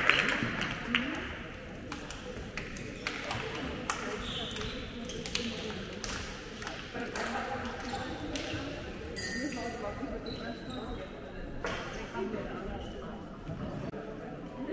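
Children and a man talk together in a large echoing hall.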